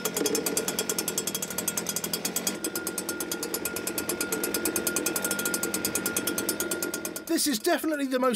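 A small petrol engine runs with a fast, rattling putter.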